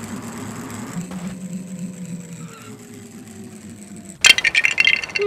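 A car engine hums as a toy car speeds along.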